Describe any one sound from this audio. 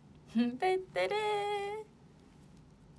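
A young woman sings out a long, high note close to a microphone.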